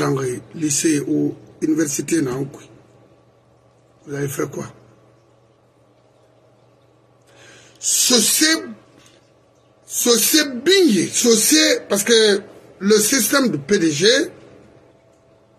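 An elderly man speaks with animation into a close microphone, in bursts with pauses.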